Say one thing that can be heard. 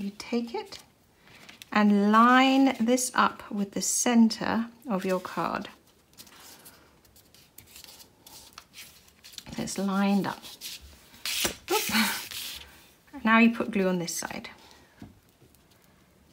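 Paper rustles and crinkles as hands press it down.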